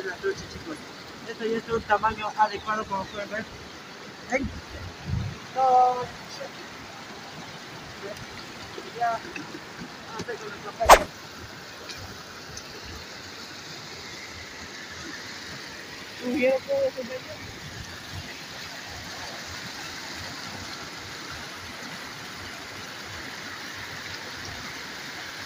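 A river rushes and splashes steadily nearby.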